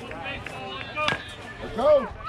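A metal bat cracks against a ball.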